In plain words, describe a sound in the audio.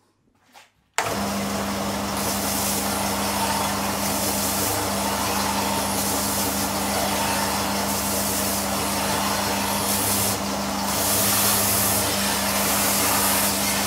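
A belt sander whirs loudly with a steady hum.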